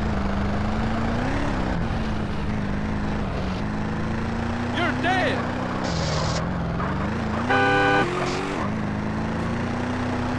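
A car engine hums steadily, rising and falling in pitch as the car drives.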